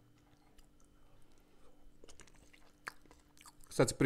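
A man chews food close to a microphone.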